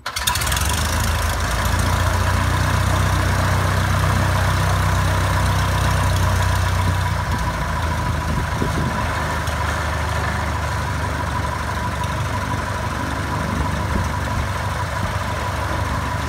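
A small propeller plane's engine idles with a steady, rumbling drone close by.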